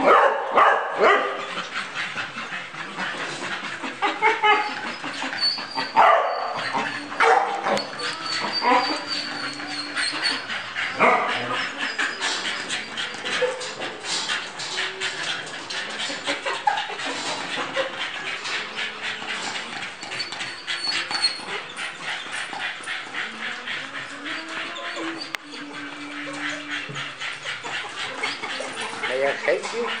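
A young man speaks softly and coaxingly to a dog close by.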